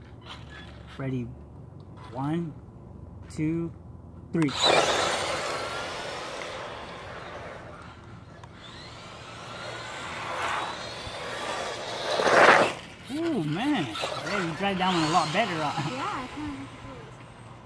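A small electric motor whines and revs up and down, rising and falling in pitch.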